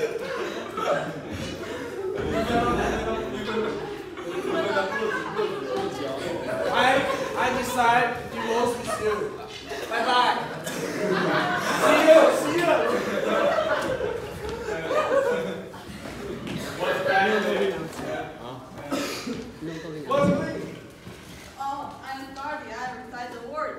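Young men talk and laugh loudly nearby.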